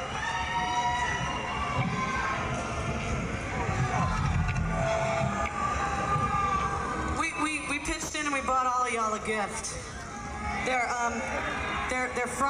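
A rock band plays electric guitars loudly outdoors, heard from within a crowd.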